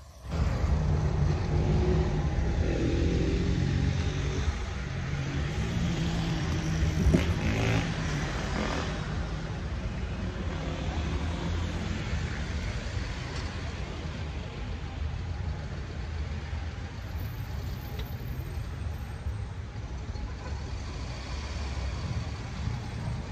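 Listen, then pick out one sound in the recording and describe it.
Traffic rumbles steadily on a nearby street.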